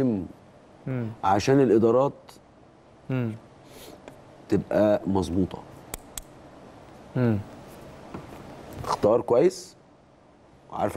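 A man speaks calmly and with animation into a microphone, in short bursts.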